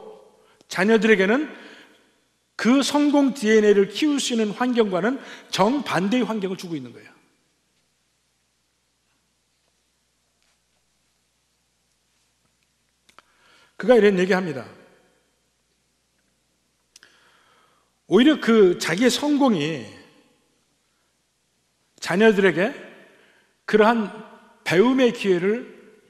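A middle-aged man speaks with animation through a microphone, pausing at length between phrases.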